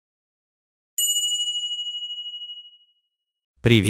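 A bell chimes brightly and rings out.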